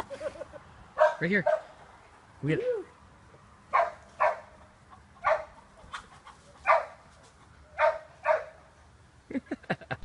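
A man speaks casually outdoors.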